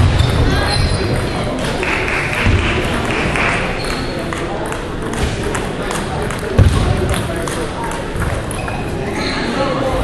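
Footsteps squeak and thud on a wooden floor.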